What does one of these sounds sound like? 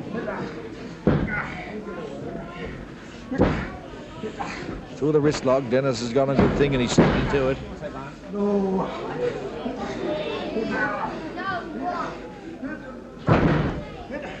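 Heavy bodies thud and slam onto a mat.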